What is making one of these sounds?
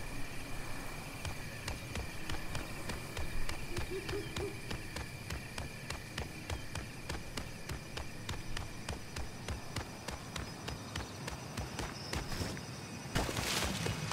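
Quick footsteps thud steadily on grass.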